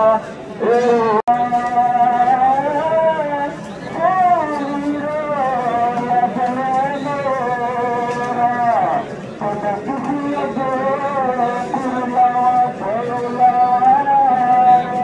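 A man chants loudly through a loudspeaker outdoors.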